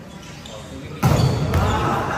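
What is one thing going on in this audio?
A volleyball is struck with a sharp thump.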